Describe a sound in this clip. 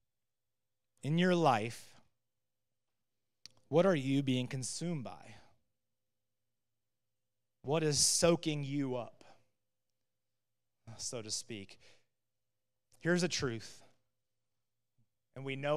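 A man speaks calmly into a microphone, heard through a loudspeaker, with pauses between phrases.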